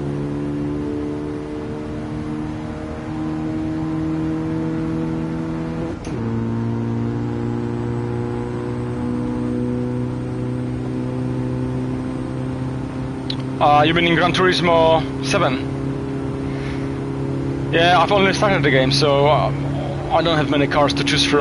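A car engine drones steadily and climbs in pitch, dropping at each gear change.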